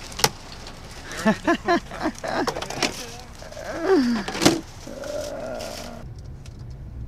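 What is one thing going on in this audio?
Plastic crates clatter and knock as they are loaded.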